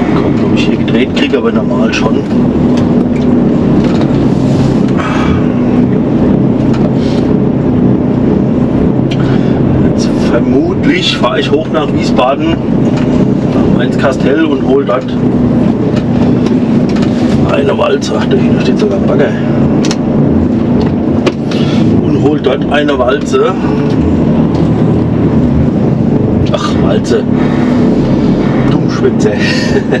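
A truck cab's interior rattles and knocks on a bumpy dirt track.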